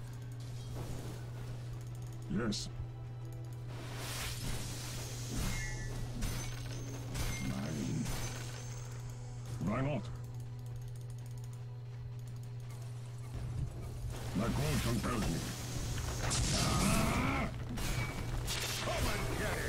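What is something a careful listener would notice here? Game spells whoosh and crackle in short bursts.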